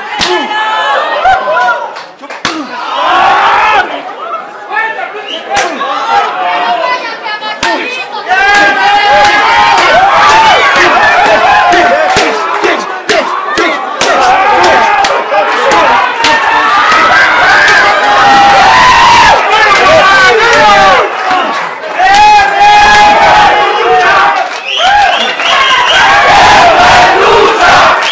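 A crowd of men and women shouts and cheers nearby.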